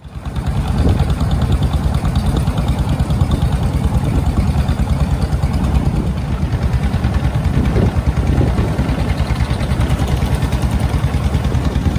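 Water splashes against the hull of a moving boat.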